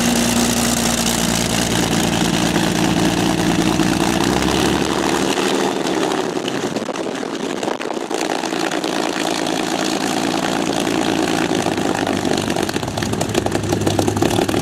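A propeller aircraft engine runs loudly nearby with a deep throbbing drone.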